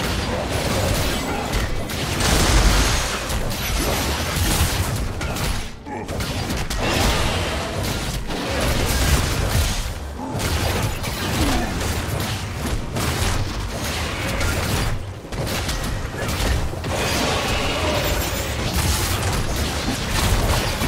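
Magic spells crackle and explode in a busy fantasy battle.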